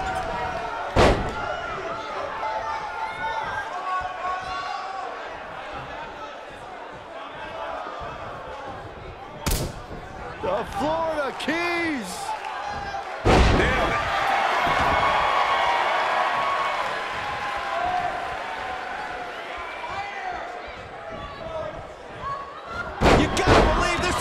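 Bodies slam heavily onto a wrestling mat several times.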